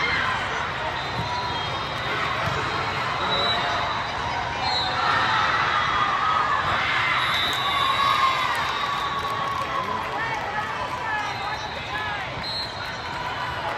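A crowd of voices chatters and echoes through a large hall.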